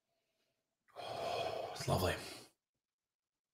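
A man sniffs deeply.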